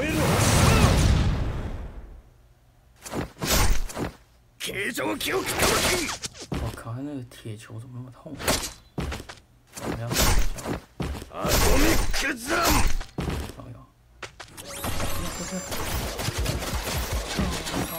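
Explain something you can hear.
Sharp punches and magic blasts burst again and again.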